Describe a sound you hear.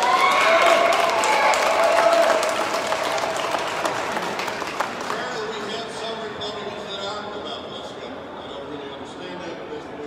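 An elderly man speaks through a microphone in an echoing hall.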